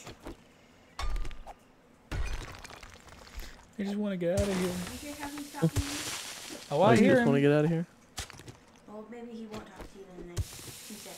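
A pickaxe strikes rock with sharp thuds and crumbling stone.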